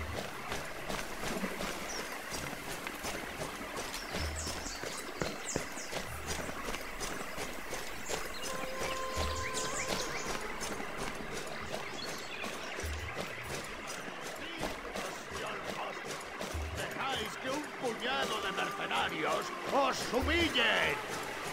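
Footsteps thud quickly on stone and grass.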